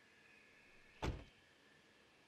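A car door slams shut.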